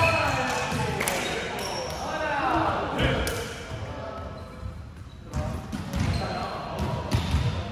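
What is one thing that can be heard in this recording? A volleyball thumps off hands.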